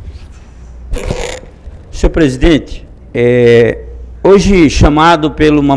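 An older man speaks into a microphone in a large room.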